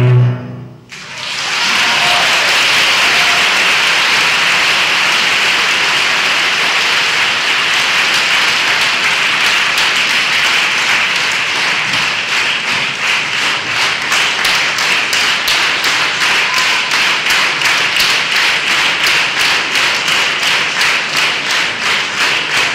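A large audience applauds loudly, later clapping in rhythm.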